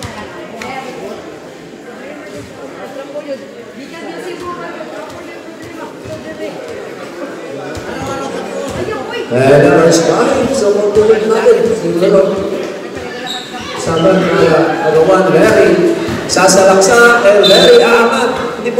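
A crowd murmurs and calls out.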